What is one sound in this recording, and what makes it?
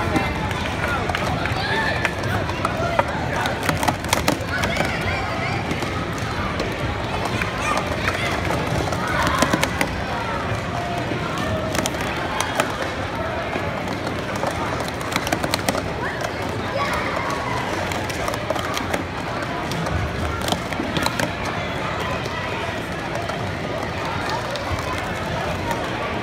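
Plastic cups clatter rapidly as children stack and unstack them on a table.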